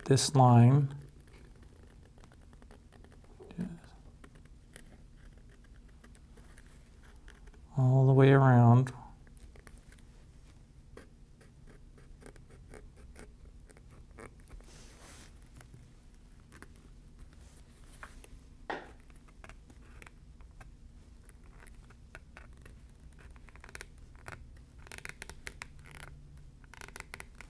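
A craft knife scrapes and cuts through leather.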